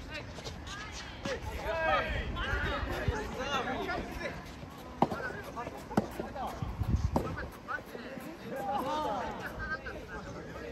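Young people talk and call out nearby.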